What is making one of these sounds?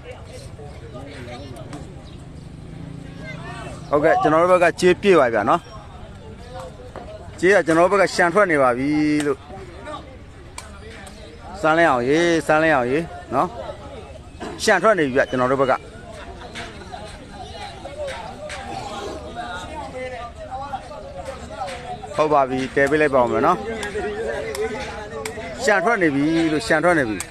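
A crowd of spectators murmurs outdoors.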